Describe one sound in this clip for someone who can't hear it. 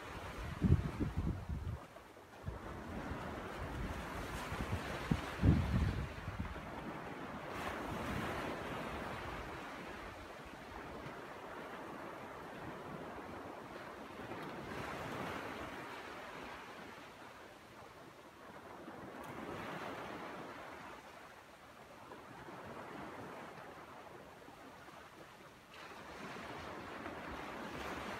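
Small waves wash and break gently on a shore.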